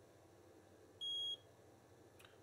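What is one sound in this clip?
An electronic soldering station gives a single steady beep.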